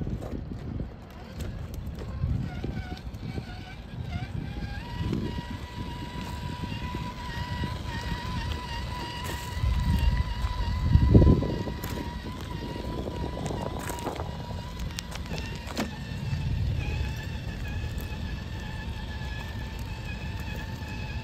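Stones crunch and rattle under a toy truck's tyres.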